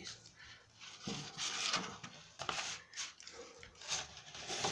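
Stiff paper rustles as it is unfolded.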